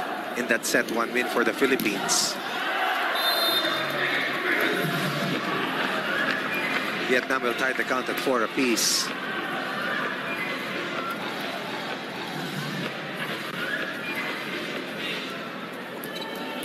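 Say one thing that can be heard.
A large indoor crowd cheers and chatters.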